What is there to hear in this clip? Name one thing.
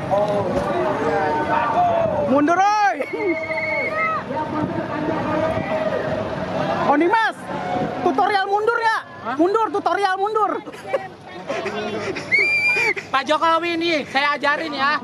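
A crowd chatters and shouts outdoors all around.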